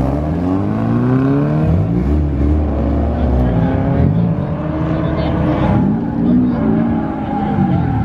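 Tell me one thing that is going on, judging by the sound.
Tyres squeal on pavement as a car slides.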